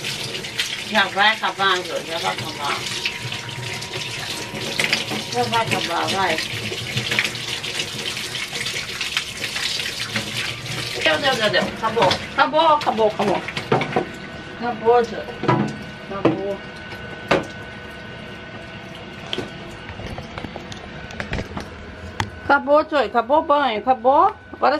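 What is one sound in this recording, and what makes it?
A cat meows loudly and repeatedly.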